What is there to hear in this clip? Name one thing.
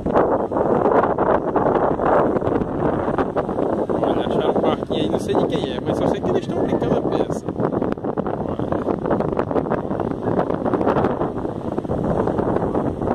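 Small waves break and wash onto a sandy shore.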